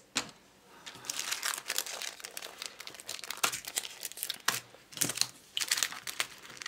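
A plastic wrapper crinkles and rustles up close.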